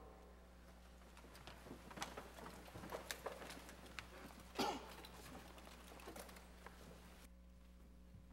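People shuffle and settle into their seats.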